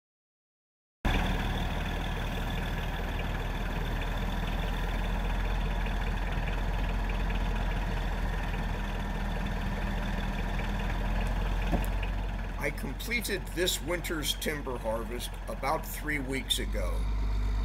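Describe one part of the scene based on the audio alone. A truck engine runs steadily.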